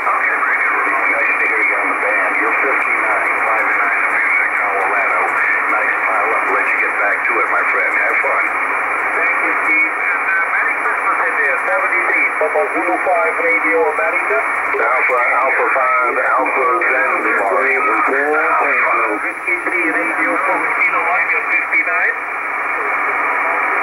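A radio receiver hisses and crackles with static through a loudspeaker.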